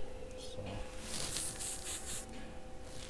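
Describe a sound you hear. An airbrush hisses in short bursts.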